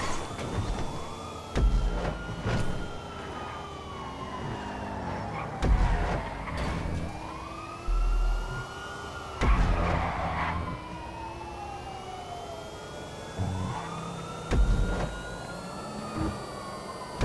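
A sports car engine revs high and climbs through the gears.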